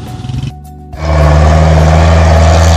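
A truck engine rumbles loudly.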